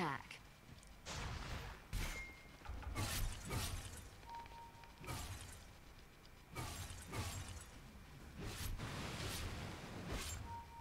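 Game spells whoosh and crackle in short bursts.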